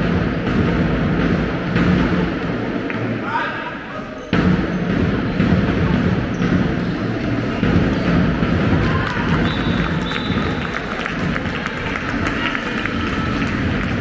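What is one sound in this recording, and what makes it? A ball bounces on a hard floor.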